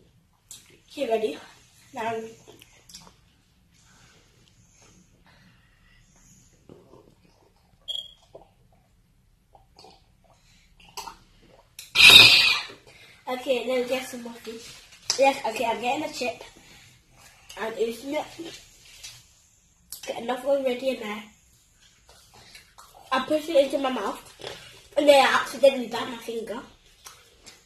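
A young girl talks and exclaims close by.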